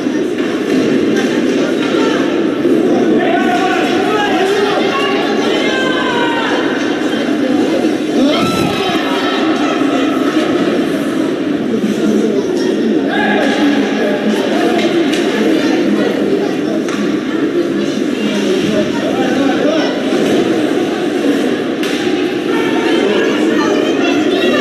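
A crowd of spectators talks and shouts in an echoing arena.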